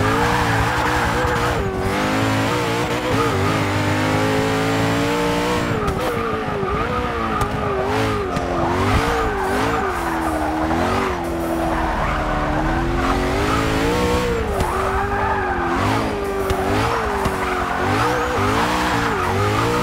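Tyres squeal as the car slides through corners.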